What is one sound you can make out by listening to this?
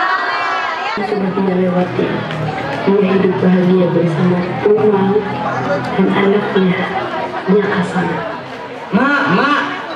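A young man sings through loudspeakers outdoors.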